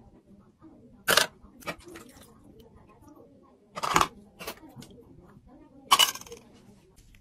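Plastic lids clatter onto a metal tray.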